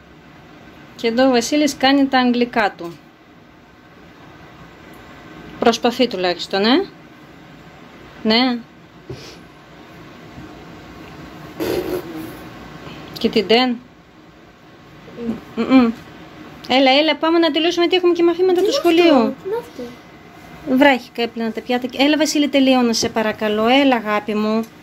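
A young child talks calmly, close by.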